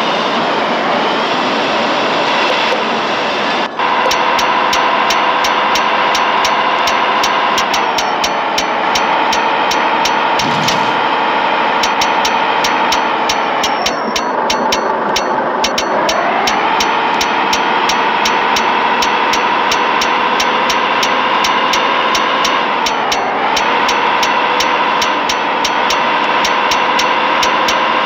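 A truck engine drones steadily, dipping in pitch as gears change.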